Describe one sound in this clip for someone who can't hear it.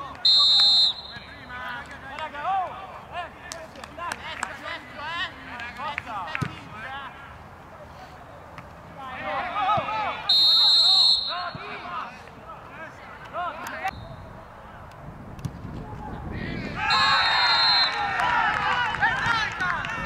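Men shout and call out to each other across an open field.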